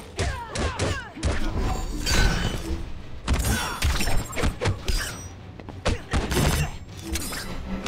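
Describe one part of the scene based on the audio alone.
Fire crackles and whooshes.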